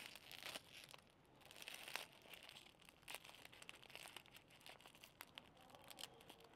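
Plastic wrapping crinkles and rustles close by as it is torn open.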